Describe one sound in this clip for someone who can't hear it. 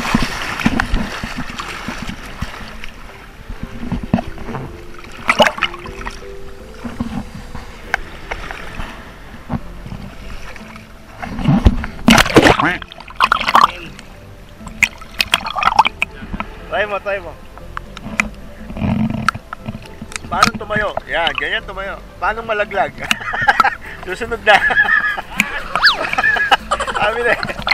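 Water splashes and laps close by.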